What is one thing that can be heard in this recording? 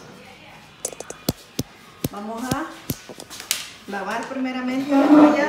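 A knife clicks against a cutting board.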